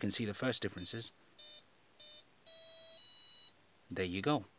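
An electronic speed controller gives a series of short, high beeps.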